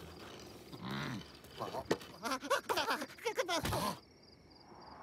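Small creatures jabber and squeal excitedly in high, silly voices.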